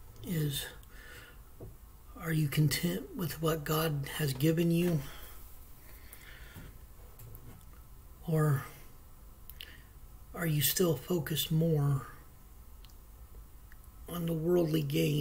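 A man talks calmly and close by, with pauses, heard through a microphone.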